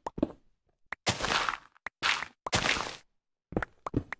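Loose dirt crumbles in short, hissing bursts.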